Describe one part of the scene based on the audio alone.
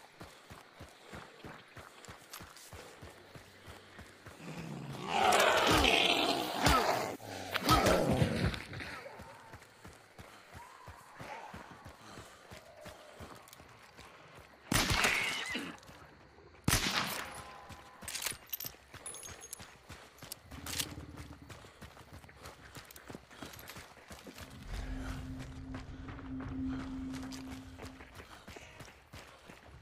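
Footsteps crunch quickly on dirt and grass.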